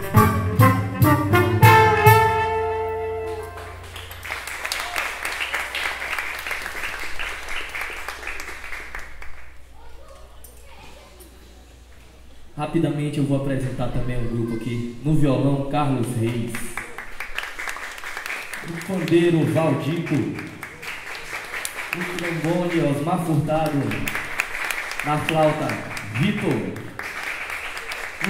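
A small band plays a lively tune.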